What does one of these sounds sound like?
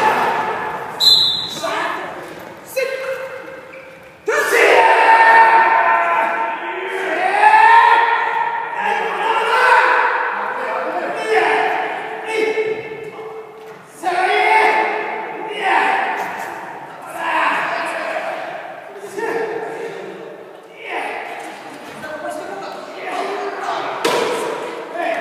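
Young people shout counts together in a large echoing hall.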